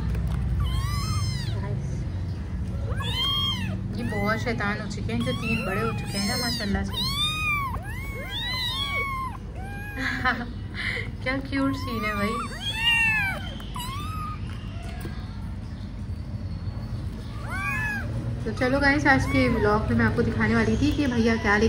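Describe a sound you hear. Kittens mew loudly and repeatedly from close by.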